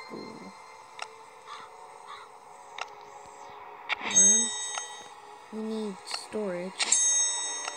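A young boy speaks close to a microphone.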